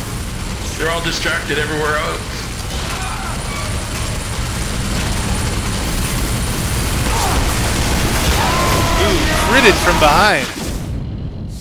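A rapid-fire machine gun fires in long, roaring bursts.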